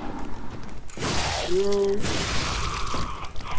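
A blade swings and strikes in a fight.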